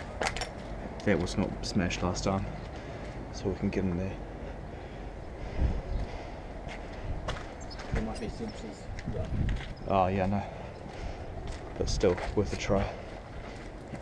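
A young man talks close by, in short bursts.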